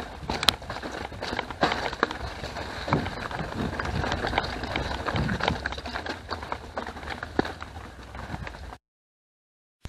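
Bicycle tyres crunch and rattle over a bumpy dirt trail.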